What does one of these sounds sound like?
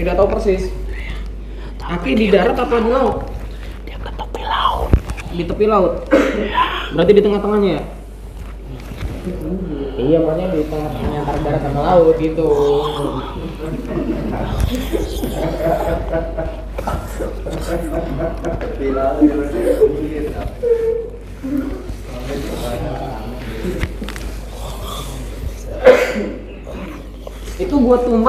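Young men talk close by with animation.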